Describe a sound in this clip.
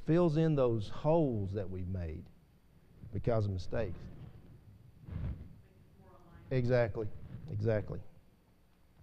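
An elderly man preaches with emphasis into a microphone, pausing between phrases.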